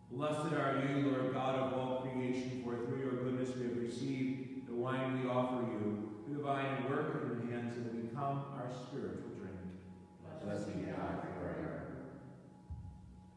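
A man chants in a slow, singing voice in an echoing room.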